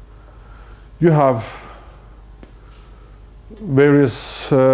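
An older man lectures calmly in a large, echoing hall.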